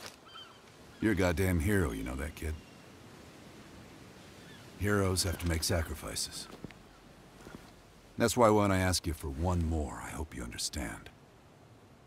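A man speaks calmly and gravely nearby.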